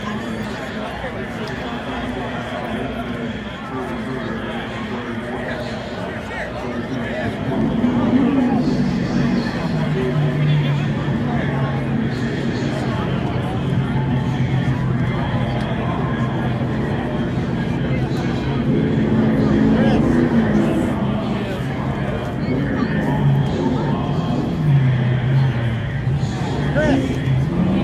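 A crowd of people chatters outdoors in a large open space.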